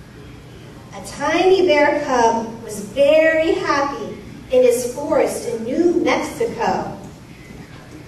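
A woman reads aloud with animation through a microphone and loudspeaker in a large hall.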